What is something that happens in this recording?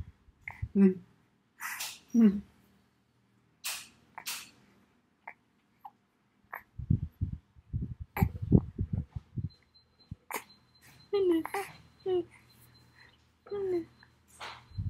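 A woman speaks softly and playfully close by.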